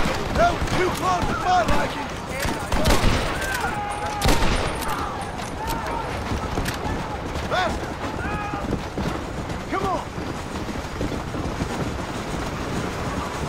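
Horse hooves pound in a fast gallop.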